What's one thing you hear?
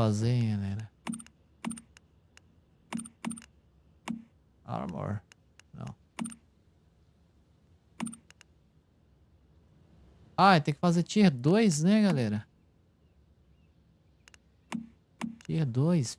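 Short interface clicks tick again and again.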